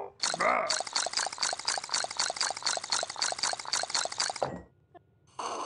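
A cartoon creature slurps a drink noisily through a straw.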